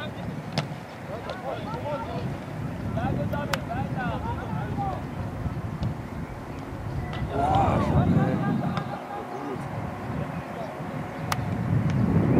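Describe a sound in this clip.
A football is kicked.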